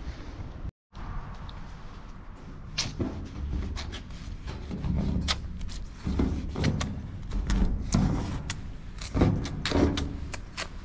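A marker squeaks and scratches across a hard surface.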